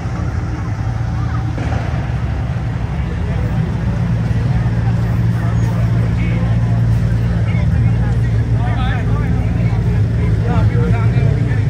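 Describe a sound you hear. A truck engine rumbles low and steady nearby.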